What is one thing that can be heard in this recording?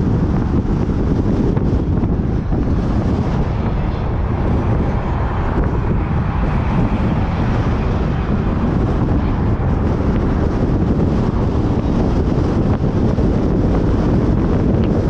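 Wind rumbles loudly against a moving vehicle.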